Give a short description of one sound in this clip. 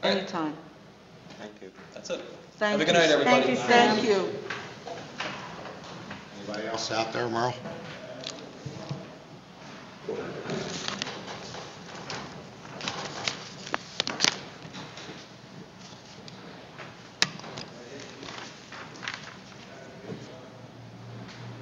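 Men talk at a meeting, heard through room microphones.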